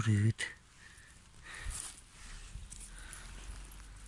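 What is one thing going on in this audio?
Fingers scrape and rustle through dry, loose soil.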